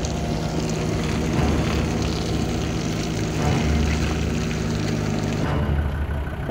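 An engine rumbles steadily close by.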